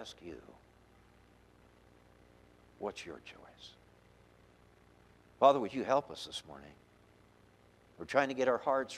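A middle-aged man speaks slowly and earnestly through a microphone, with pauses.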